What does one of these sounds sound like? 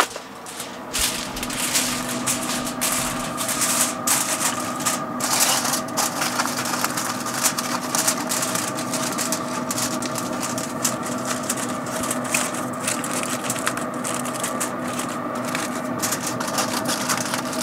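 Hands crinkle and fold aluminium foil over a foil pan.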